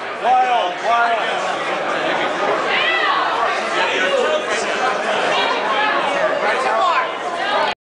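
Several men sing together in a loud, echoing room.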